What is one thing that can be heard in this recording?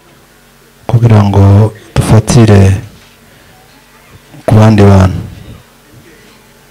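A man speaks loudly into a microphone over loudspeakers in a large echoing room.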